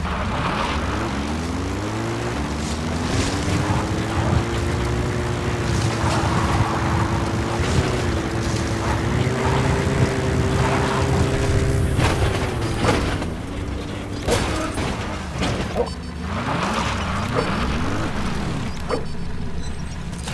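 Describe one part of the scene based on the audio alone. A vehicle engine roars and revs.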